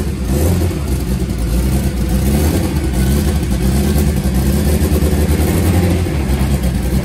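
A race car engine idles loudly with a deep, rough burble close by.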